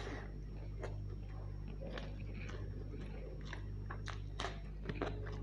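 A man chews and smacks wet food close to the microphone.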